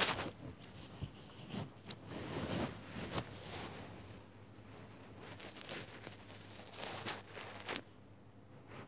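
A finger taps and brushes against a phone.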